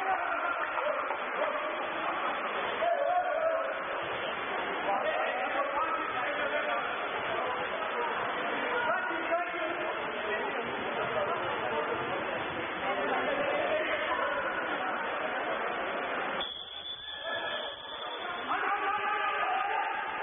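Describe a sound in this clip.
Water splashes as swimmers thrash in a pool.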